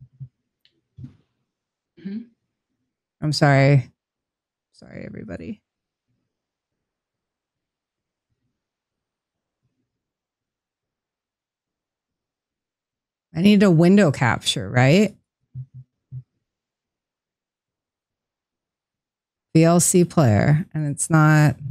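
A young woman speaks casually into a close microphone, in short bursts with pauses.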